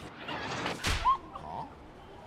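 A kitten mews briefly.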